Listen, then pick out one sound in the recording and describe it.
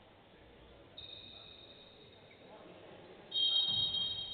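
Sneakers squeak sharply on a hard court in a large hall.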